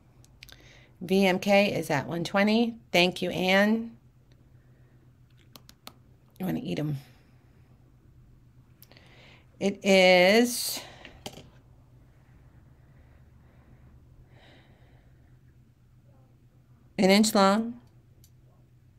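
A middle-aged woman speaks calmly and close to a microphone, in short phrases with pauses.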